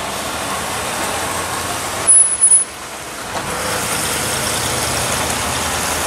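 A classic car engine rumbles as it drives slowly past.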